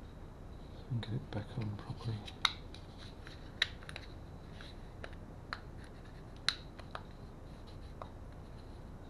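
Small plastic parts click and tap as hands handle them.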